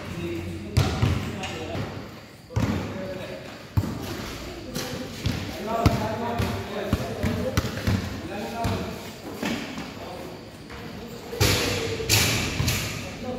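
A basketball bounces on a hard court with sharp thuds.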